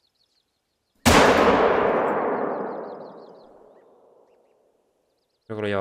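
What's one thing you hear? A rifle shot cracks loudly and echoes away slowly.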